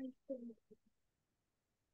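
An older woman speaks briefly over an online call.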